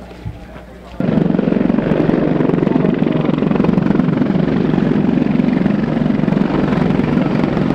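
A helicopter's rotors thump loudly overhead.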